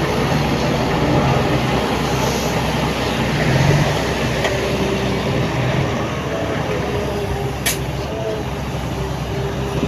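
Dirt and rocks slide and thud out of a tipping truck bed.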